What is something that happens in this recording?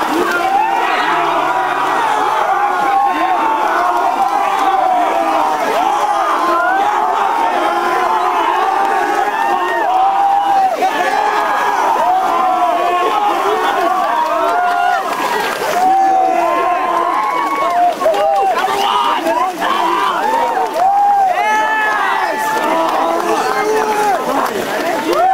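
A crowd of young men and women cheers and shouts excitedly outdoors.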